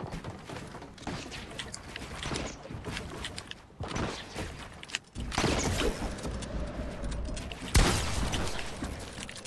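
Quick clattering thuds of walls and ramps snapping into place repeat rapidly.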